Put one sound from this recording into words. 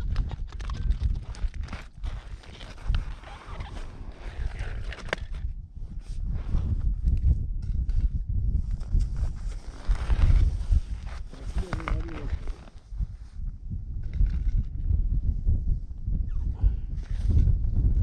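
Wind blows steadily into the microphone outdoors.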